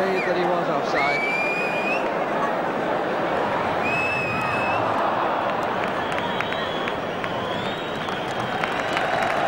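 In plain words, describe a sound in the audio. A crowd whistles shrilly.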